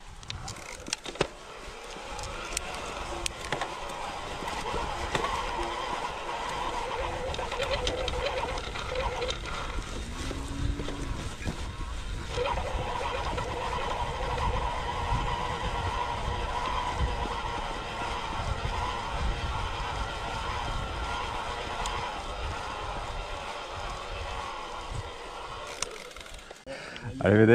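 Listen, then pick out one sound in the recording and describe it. A bicycle rolls over bumpy grass, its tyres rumbling and rattling.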